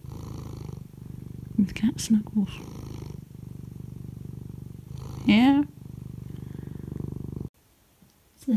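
A cat purrs loudly and steadily up close.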